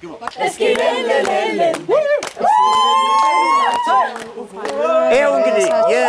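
A group of young men and women cheer and shout excitedly.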